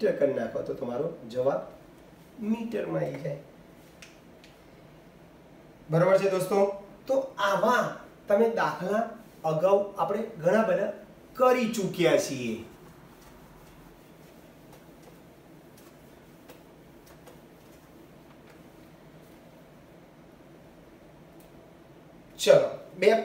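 A man speaks calmly and clearly, close by, as if explaining a lesson.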